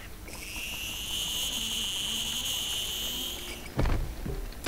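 A grappling line whirs steadily as it reels in.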